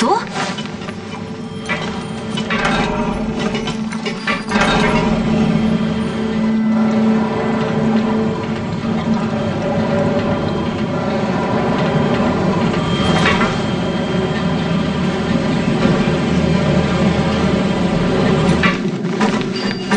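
Footsteps clank on a metal grate.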